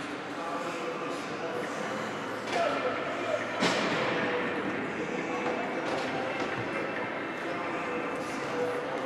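Skates scrape and glide over ice in a large echoing rink.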